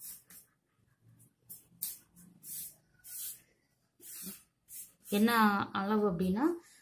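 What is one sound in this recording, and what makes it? Hands brush and smooth fabric with soft rustling strokes.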